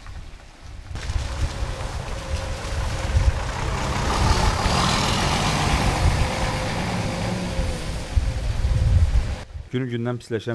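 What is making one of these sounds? A bus engine rumbles as the bus drives past.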